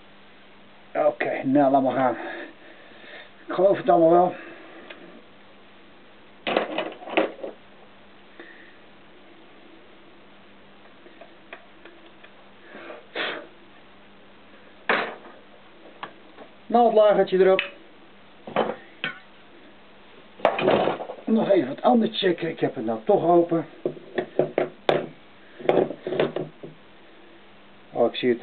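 Metal engine parts clink and tap as they are handled.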